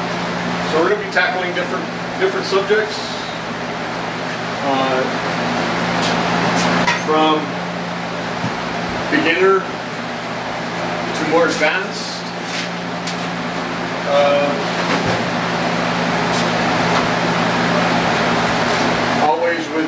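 A middle-aged man talks casually nearby.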